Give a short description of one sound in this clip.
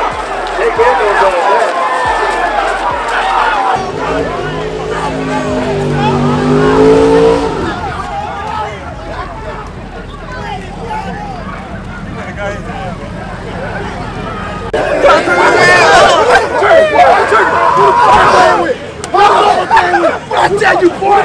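A crowd chatters and shouts outdoors.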